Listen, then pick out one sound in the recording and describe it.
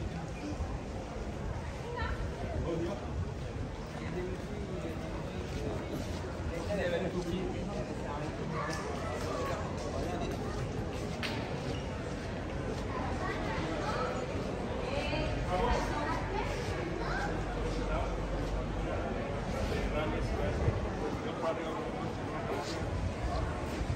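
Footsteps tap on a paved street.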